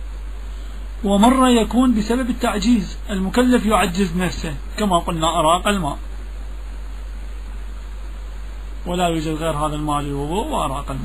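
A man chants in a drawn-out, expressive voice.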